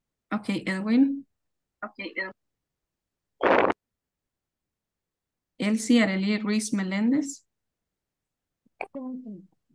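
A woman speaks with animation through an online call.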